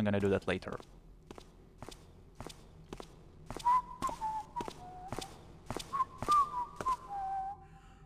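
Footsteps tread on stone cobbles.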